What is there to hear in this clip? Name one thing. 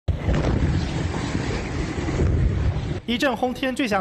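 Explosions boom and roar loudly outdoors.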